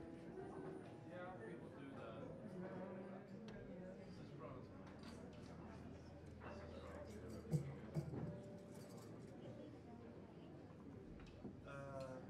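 A double bass is plucked in a walking line.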